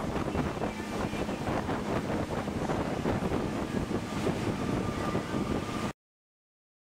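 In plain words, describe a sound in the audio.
Water rushes and splashes against a speedboat's hull.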